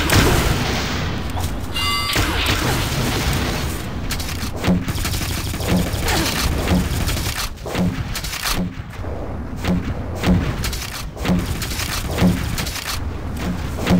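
Game weapons fire in bursts with loud blasts.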